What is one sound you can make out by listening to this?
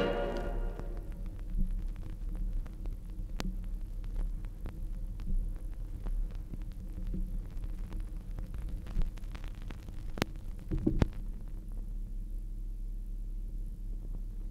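Surface noise crackles and pops from a spinning vinyl record.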